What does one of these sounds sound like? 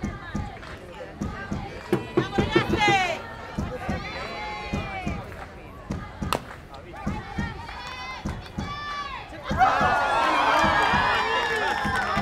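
Young women shout and chant from a distance outdoors.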